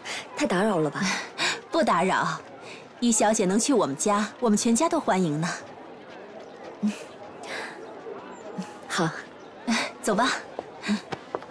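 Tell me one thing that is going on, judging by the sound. A young woman speaks politely, close by.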